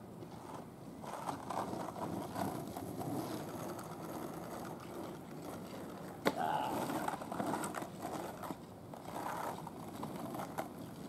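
Skateboard wheels roll and rumble on rough asphalt.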